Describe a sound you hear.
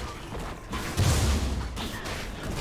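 A burst of magic booms loudly.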